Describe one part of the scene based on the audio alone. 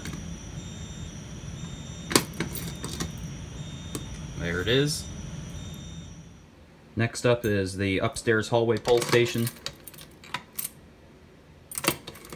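A bunch of keys jingles.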